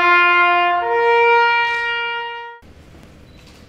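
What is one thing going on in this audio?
A trumpet plays a slow, loud melody close by.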